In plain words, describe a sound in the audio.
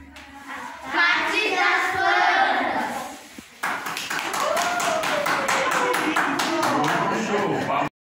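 A group of children recite together loudly.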